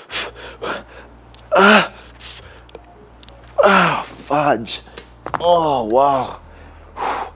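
A man grunts and groans with effort.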